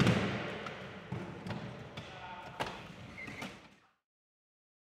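Wheelchair tyres squeak and knock on a hard gym floor, echoing in a large hall.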